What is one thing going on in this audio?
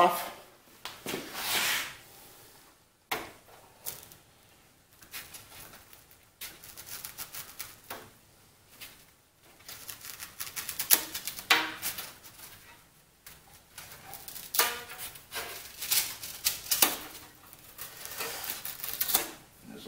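A man slides and shifts a metal bar on a wooden bench with scraping and knocking.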